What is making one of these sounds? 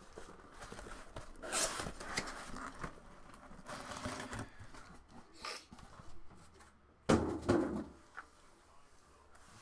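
Cardboard rustles and scrapes as boxes are handled.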